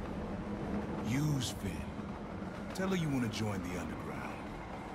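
A man speaks in a low, deep voice close by.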